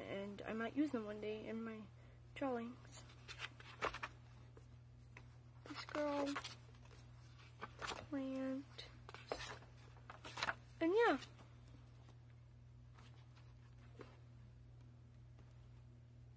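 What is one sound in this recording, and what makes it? Paper pages rustle as they are turned in a spiral-bound sketchbook.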